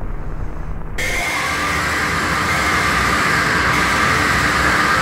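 A young man screams loudly.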